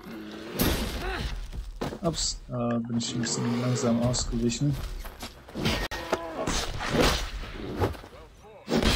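A bear growls and roars loudly.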